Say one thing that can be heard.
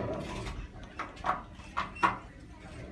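Elevator buttons click as a finger presses them.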